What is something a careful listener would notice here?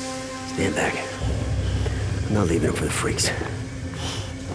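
A man speaks gruffly in a low voice.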